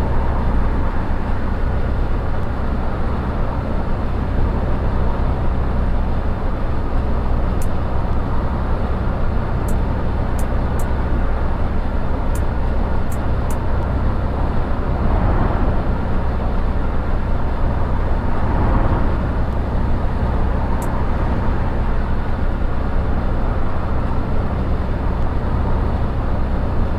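A bus engine hums low and steady as it drives along.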